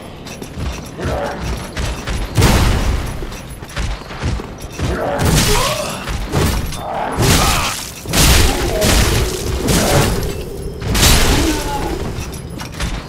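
Metal weapons clang and thud in a close fight.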